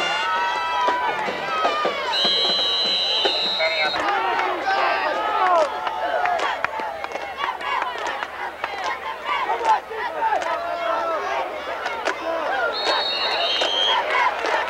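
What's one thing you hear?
Football players' pads clash and thud as they collide.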